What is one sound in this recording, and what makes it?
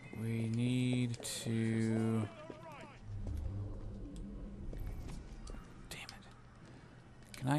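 Footsteps patter quickly across a stone rooftop.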